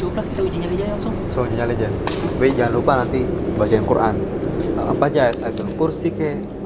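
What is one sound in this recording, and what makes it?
A young man speaks close by in a low, hushed voice.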